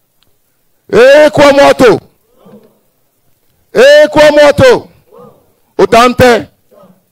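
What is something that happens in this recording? A man chants in long loud calls through a microphone.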